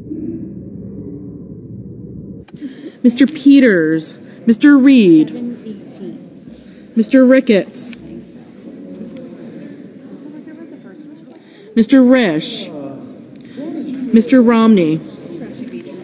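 A crowd of people murmurs quietly in the background.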